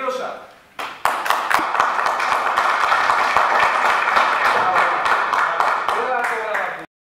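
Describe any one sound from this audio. A group of people applaud loudly.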